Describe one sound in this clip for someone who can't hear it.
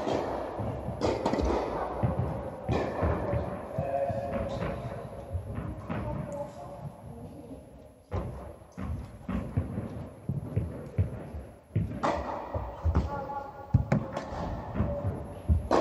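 A tennis racket strikes a ball with sharp pops that echo in a large hall.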